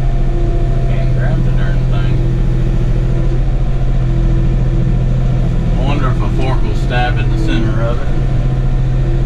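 A man speaks casually from the driver's seat, close by.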